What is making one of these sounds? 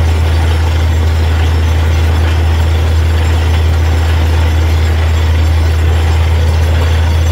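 Water and mud splash and gush from a borehole.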